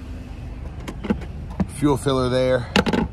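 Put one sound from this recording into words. A car fuel flap clicks open.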